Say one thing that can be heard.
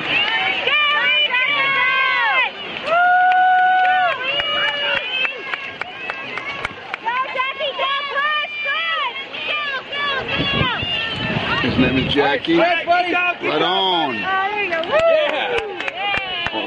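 Swimmers splash through the water nearby.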